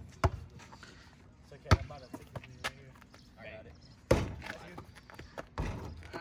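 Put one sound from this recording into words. A basketball clangs off a hoop's rim and backboard.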